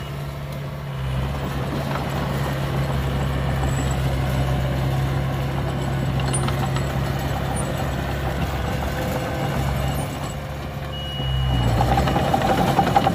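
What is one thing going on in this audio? A bulldozer engine rumbles steadily close by.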